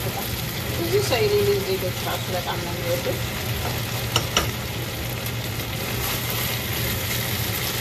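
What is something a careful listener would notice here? A spoon stirs and scrapes in a pot.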